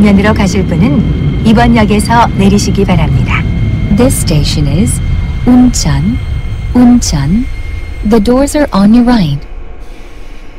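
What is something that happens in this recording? A train rumbles along the rails and slows to a stop.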